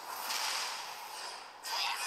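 A fiery explosion bursts with a deep boom.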